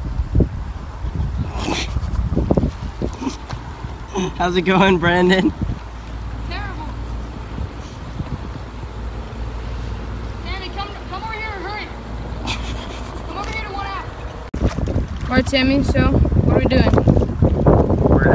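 Oars splash and dip in water.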